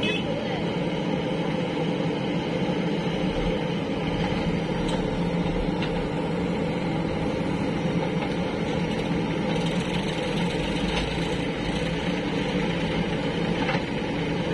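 A diesel engine of a backhoe loader rumbles steadily close by.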